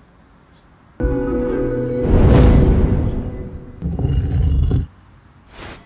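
A deep rushing whoosh swells and then fades.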